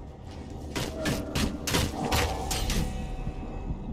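Weapons clash and strike in quick blows.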